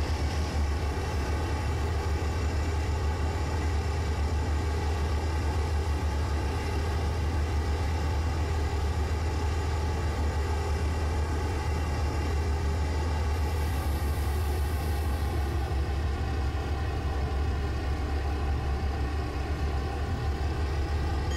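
Wheels rumble along the rails.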